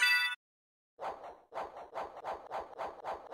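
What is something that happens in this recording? Rapid rhythmic thumps of game blows repeat.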